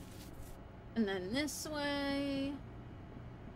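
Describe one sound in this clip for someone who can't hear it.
A young woman speaks briefly and animatedly into a nearby microphone.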